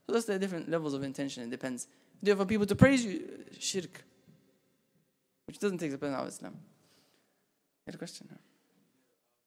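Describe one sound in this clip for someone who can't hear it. A young man speaks calmly into a microphone, in short phrases with pauses.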